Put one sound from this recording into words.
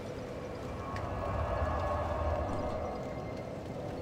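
A fire whooshes and roars loudly, then settles.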